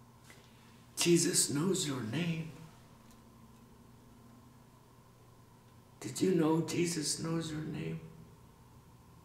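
A middle-aged man speaks close by with feeling, in short bursts separated by pauses.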